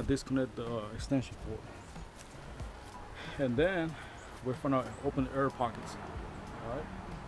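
A man talks close by, casually.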